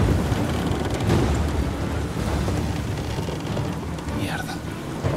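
Heavy rain patters on a windshield.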